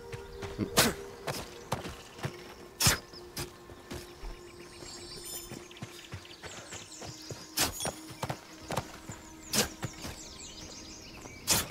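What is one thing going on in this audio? A blade slashes and thuds into a creature.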